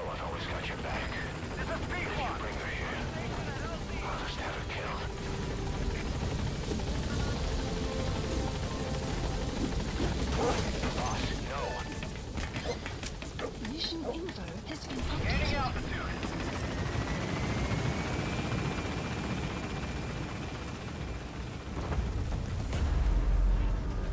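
A helicopter's rotors thump and drone close by.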